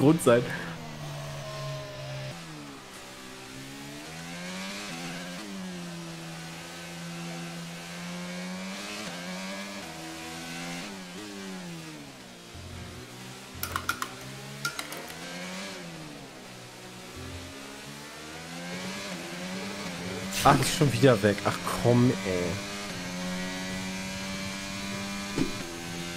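A racing car engine whines and revs up and down through gear changes.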